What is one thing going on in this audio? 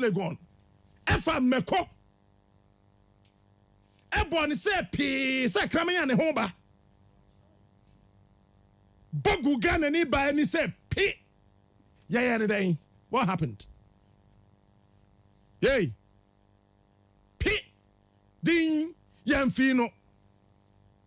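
A man speaks animatedly into a close microphone in short bursts.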